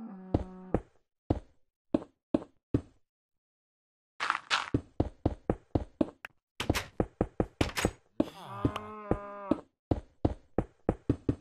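Blocks are placed and broken in quick short knocks.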